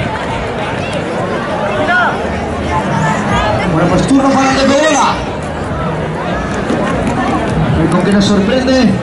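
A large crowd chatters and shouts in an open arena.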